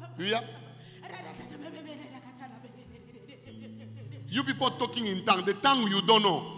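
A woman laughs and cries out loudly, close into a microphone.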